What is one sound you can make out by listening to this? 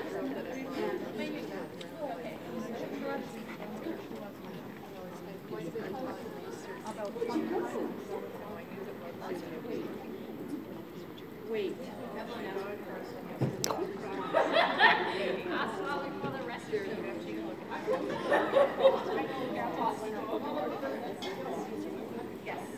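A man speaks calmly to a dog in an echoing hall.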